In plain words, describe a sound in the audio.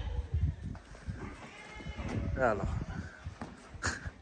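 A sheep's hooves scuff on dirt ground.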